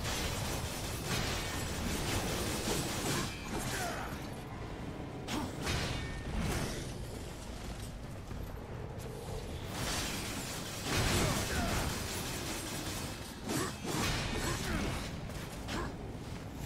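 Metal blades clash and strike in a fight, with heavy impacts.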